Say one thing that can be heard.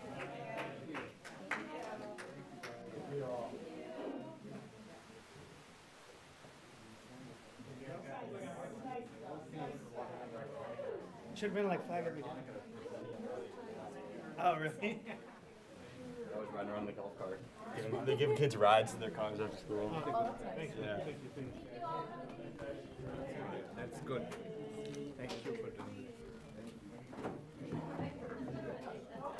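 A crowd of men and women chatter and murmur in a room.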